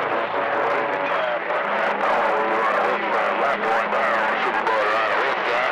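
A radio receiver hisses with crackling static.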